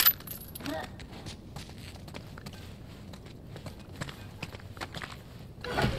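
Footsteps tread softly on a hard floor.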